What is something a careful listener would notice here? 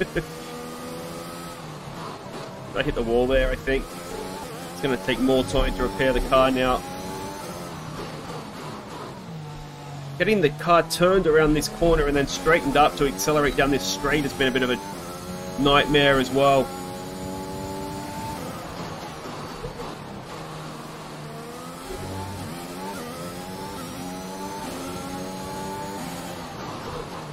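A racing car engine whines and changes pitch as it shifts gears.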